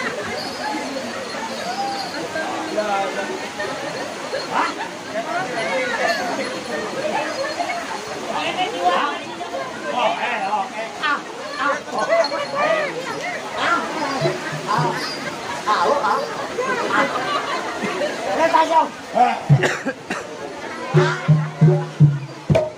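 A gong and gamelan instruments play in a lively rhythm.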